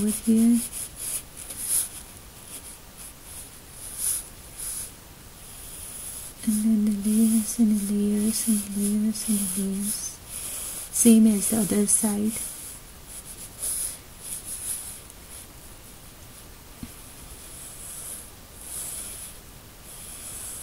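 A pencil scratches and scrapes across paper in short strokes.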